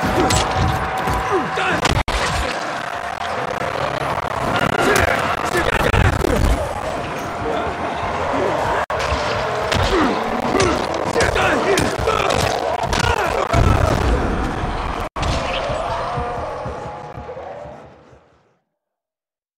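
Gunfire and explosions crack and boom in rapid bursts, then fade to silence.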